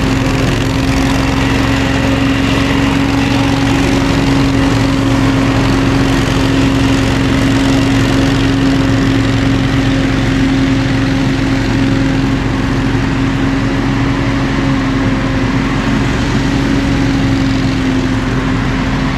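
A leaf blower engine roars steadily outdoors.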